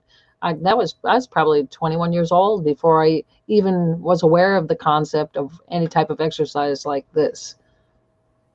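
A woman talks calmly over an online call.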